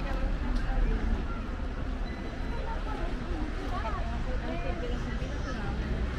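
Women chat nearby outdoors.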